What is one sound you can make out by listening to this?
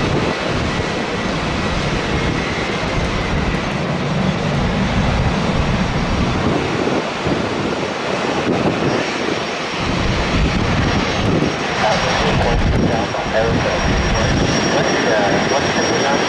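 A jet airliner's engines roar steadily as it approaches, growing louder.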